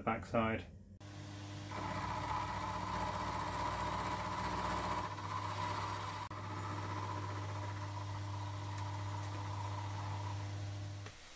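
A machine motor hums steadily.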